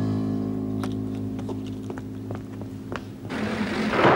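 Footsteps hurry along a paved path.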